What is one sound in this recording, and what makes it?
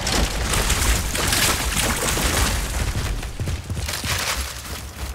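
Wind roars through a sandstorm.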